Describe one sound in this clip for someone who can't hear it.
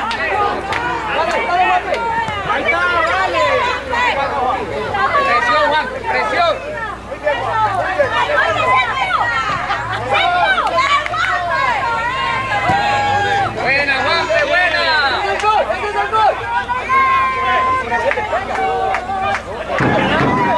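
A crowd of young spectators shouts and cheers outdoors.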